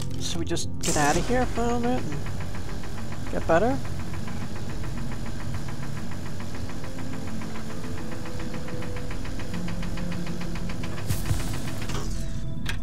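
A laser cutter buzzes with a fast, steady pulsing.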